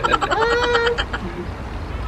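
A toddler squeals in a high voice nearby.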